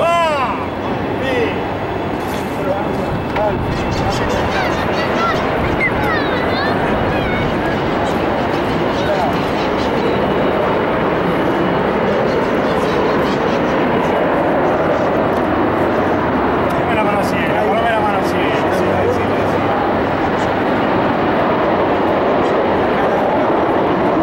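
Several middle-aged men talk among themselves close by.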